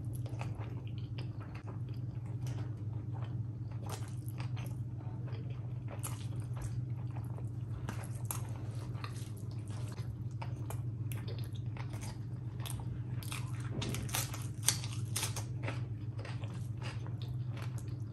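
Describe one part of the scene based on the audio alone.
Fingers squish and mix soft rice and curry.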